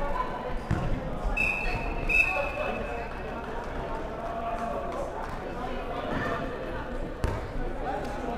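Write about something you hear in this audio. A ball thuds against the floor and walls.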